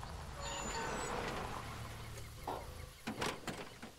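A truck engine idles.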